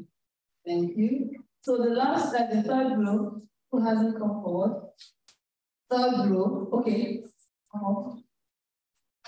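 A young woman speaks calmly into a microphone, heard over an online call.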